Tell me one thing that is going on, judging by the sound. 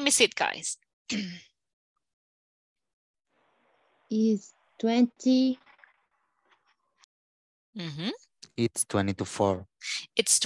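A woman speaks slowly and clearly over an online call, as if teaching.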